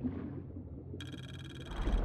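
Air bubbles gurgle and rise underwater.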